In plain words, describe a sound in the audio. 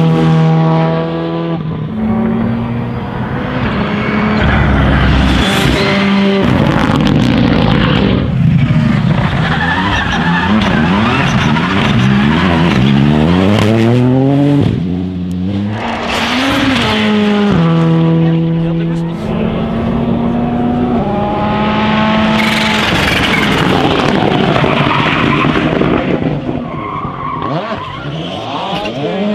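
Rally car engines roar loudly, revving up and down and shifting gears as the cars pass.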